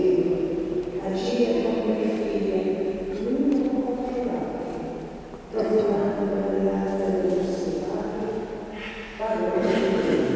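A man speaks into a microphone, heard through loudspeakers in a large echoing hall.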